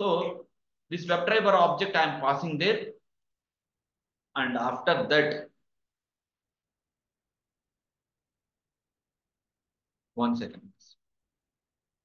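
A young man speaks calmly into a close microphone, in short bursts with long pauses.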